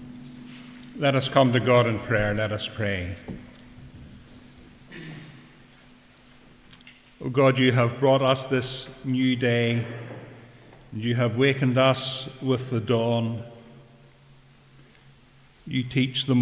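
An elderly man reads out calmly into a microphone.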